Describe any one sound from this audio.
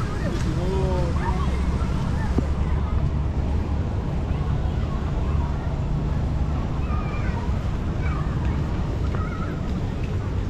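A car rumbles low and steady as it drives along a road.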